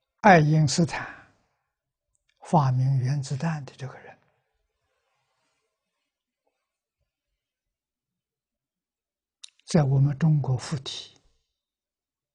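An elderly man speaks calmly through a clip-on microphone, with long pauses.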